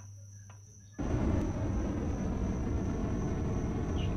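A mining tool roars with a loud, steady hiss.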